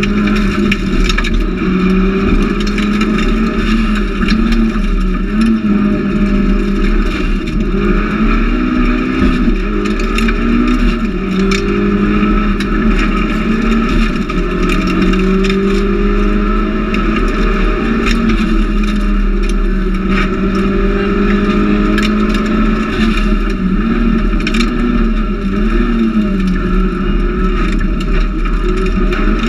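A turbocharged four-cylinder rally car engine revs hard and changes gear, heard from inside the cabin.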